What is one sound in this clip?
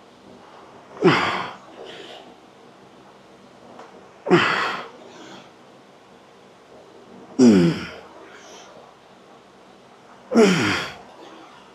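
A man grunts and exhales forcefully with each lift.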